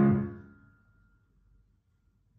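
A final piano chord rings out and fades away.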